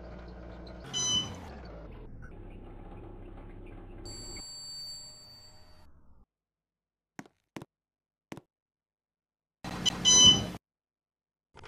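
An elevator chime rings.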